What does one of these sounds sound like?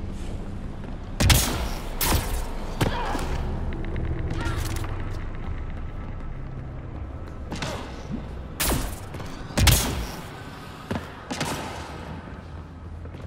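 Heavy footsteps thud on metal as an armoured figure runs.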